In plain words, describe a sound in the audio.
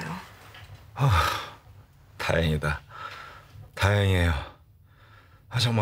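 A man groans and moans loudly, close by.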